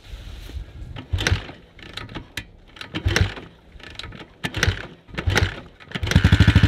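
A motorcycle engine sputters briefly.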